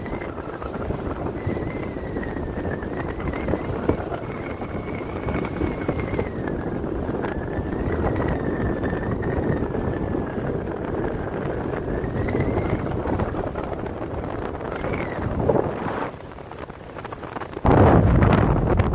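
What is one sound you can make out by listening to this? Wind rushes loudly past a microphone high in the air.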